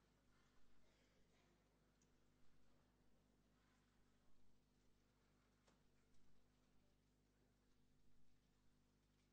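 A crowd murmurs quietly in a large echoing hall.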